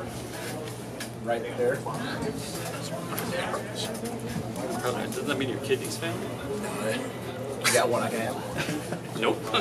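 Playing cards are shuffled by hand.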